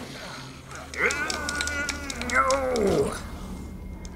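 A creature snarls and screams up close.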